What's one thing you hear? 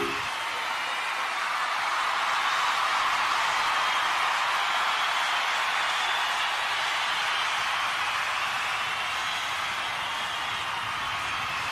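A large crowd cheers and screams loudly in a big arena.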